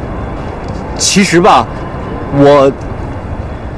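A young man speaks hesitantly, up close.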